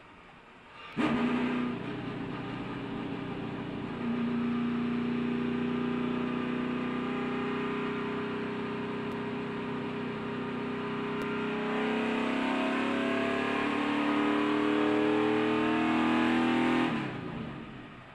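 A race car engine roars loudly up close at high speed.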